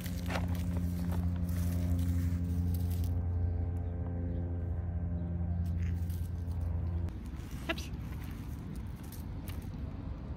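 A dog's paws patter on grass and dry leaves.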